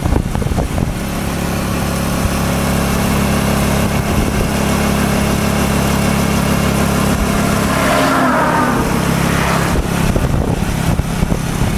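A vehicle's engine drones steadily.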